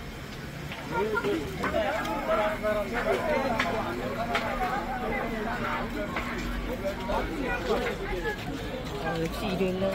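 Men chat quietly at a distance.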